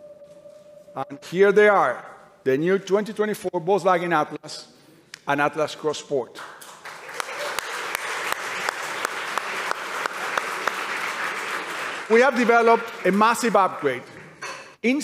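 A man speaks with animation through a headset microphone in a large hall.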